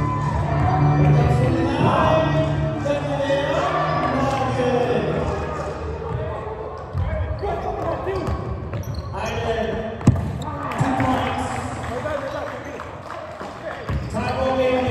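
Men shout and call out to each other during play.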